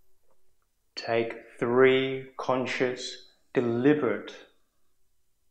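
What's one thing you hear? A man speaks slowly and calmly.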